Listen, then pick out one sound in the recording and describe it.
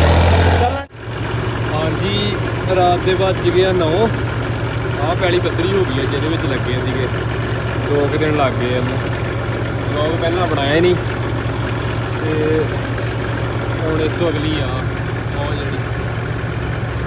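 A tractor engine drones steadily.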